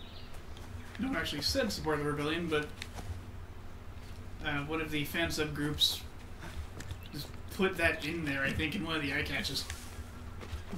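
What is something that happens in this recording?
A man talks casually into a nearby microphone, in short bursts.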